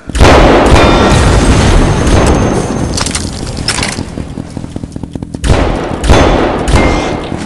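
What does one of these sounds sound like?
A heavy gun fires in loud, booming bursts.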